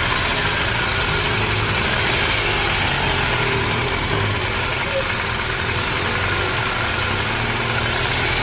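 A motorcycle engine idles close by with a low steady rumble.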